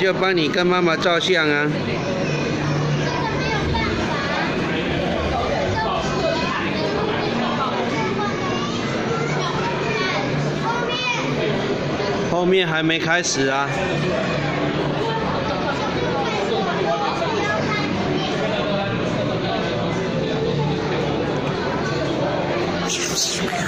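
A crowd of children and adults chatter throughout.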